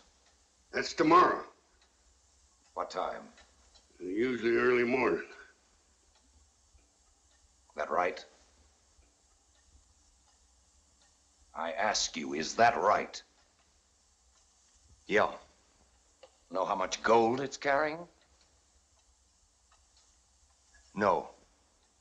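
A man speaks nearby in short, tense bursts with long pauses.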